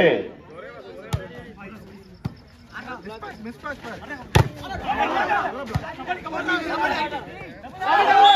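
A volleyball is struck with a sharp slap.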